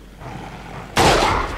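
A rifle fires with a loud crack.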